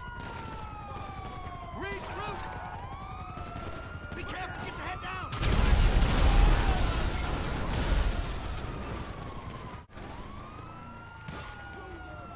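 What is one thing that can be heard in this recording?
Police sirens wail nearby, rising and falling.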